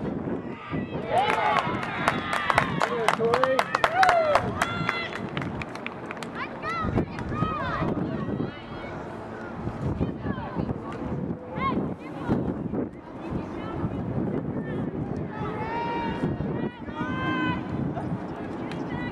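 Young women shout to each other across an outdoor field.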